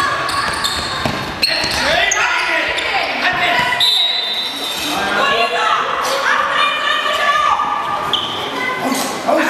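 Young girls shout and cheer excitedly.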